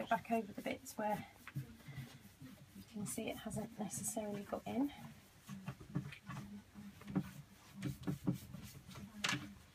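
A cloth rubs against a wooden cabinet.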